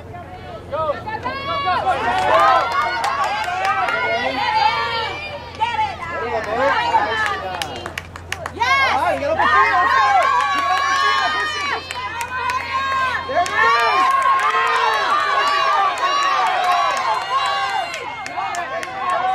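A crowd of spectators cheers and yells.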